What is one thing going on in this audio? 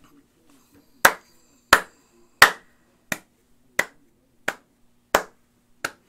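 A man claps his hands in a steady rhythm.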